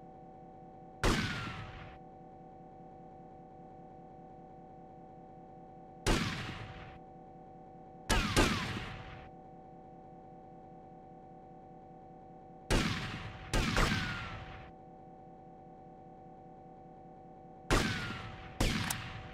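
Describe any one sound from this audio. A gun fires single loud shots, each ringing out and fading with an echo.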